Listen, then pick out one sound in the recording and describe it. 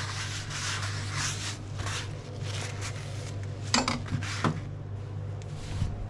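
A cloth wipes along a knife blade.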